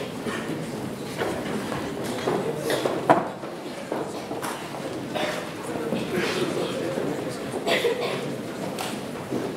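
A large choir sings together in an echoing hall.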